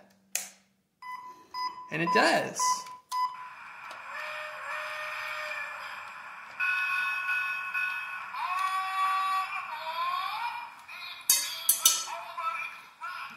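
A toy steam engine plays tinny electronic train sounds through a small speaker.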